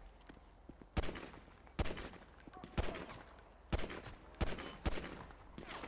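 A handgun fires repeated sharp shots.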